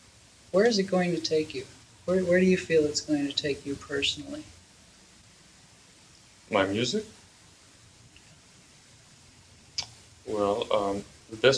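A man speaks calmly and close to a microphone, in short phrases with pauses.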